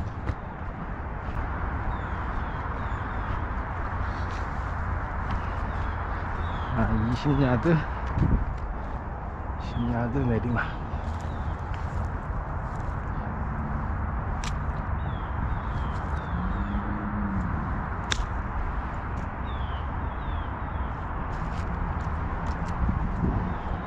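Footsteps swish through dry grass and leaves outdoors.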